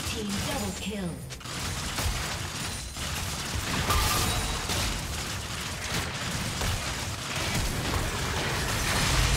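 Magic spell effects whoosh and crackle in a busy fight.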